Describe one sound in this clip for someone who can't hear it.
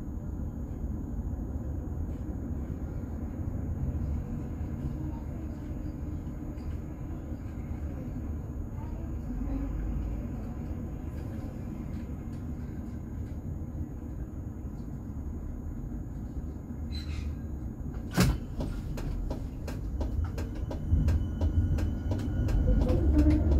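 Outdoor city traffic rumbles steadily.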